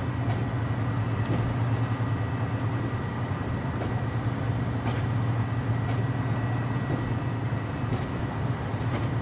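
Wheels click over rail joints in a steady rhythm.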